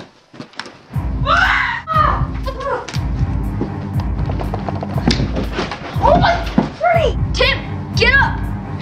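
Bodies thump and tumble on a floor.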